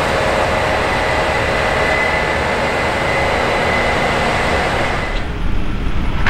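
A combine harvester engine roars steadily close by.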